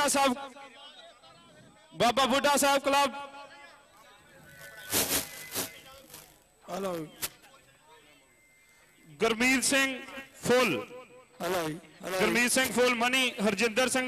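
A man speaks loudly and with animation over a loudspeaker.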